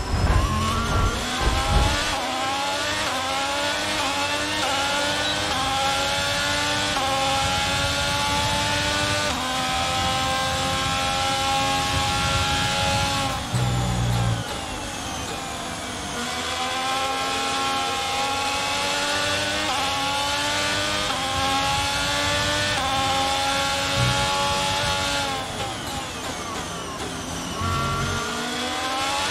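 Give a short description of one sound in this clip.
A racing car engine screams at high revs, rising through the gears and dropping as it brakes.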